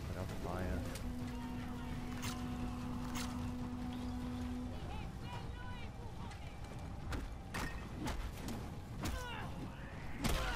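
A bow string twangs as an arrow is loosed.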